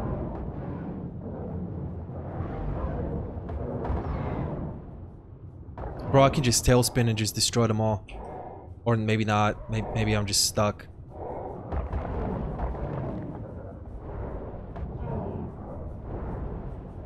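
A low underwater rumble and churning swell in the background.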